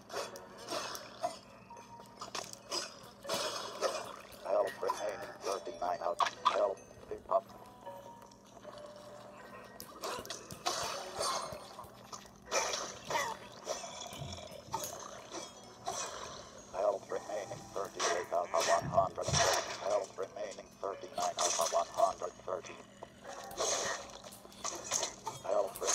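Video game sound effects play from a small handheld speaker.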